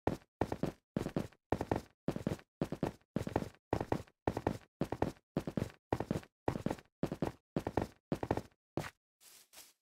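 Footsteps thud quickly and steadily on stone.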